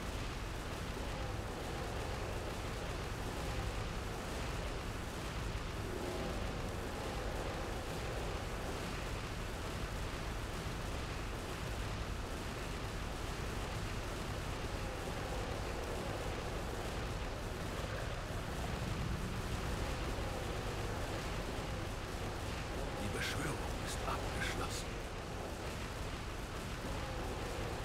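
Magical energy beams crackle and zap steadily as towers fire.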